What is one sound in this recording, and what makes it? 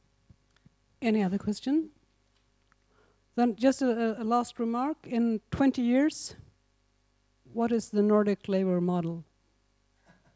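A woman speaks into a microphone over a loudspeaker, calmly and with pauses, in an echoing room.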